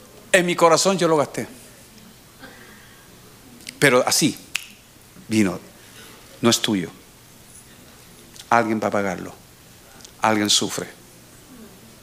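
A middle-aged man speaks into a microphone in short, calm phrases with pauses.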